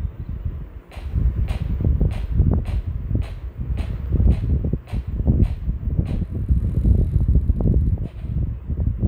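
Footsteps tap at a steady pace.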